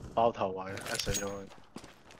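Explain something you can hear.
A rifle fires with a loud, sharp crack.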